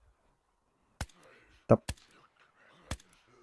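A rifle fires several sharp shots.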